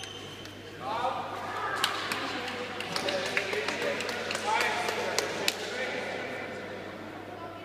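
A crowd of onlookers murmurs and calls out in the background.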